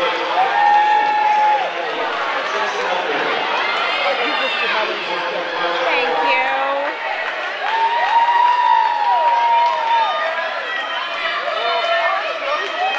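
A crowd of spectators cheers and shouts loudly in an echoing hall.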